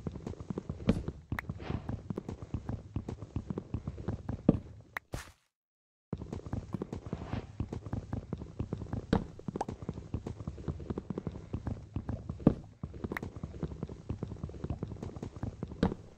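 Wooden blocks are chopped with rapid, repeated knocks.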